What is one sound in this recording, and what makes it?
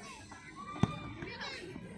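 A foot kicks a football with a thud.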